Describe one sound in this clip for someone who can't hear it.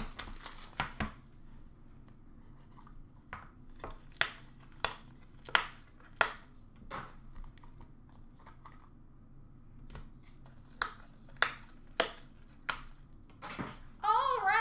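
Hard plastic card cases click and clack as they are handled.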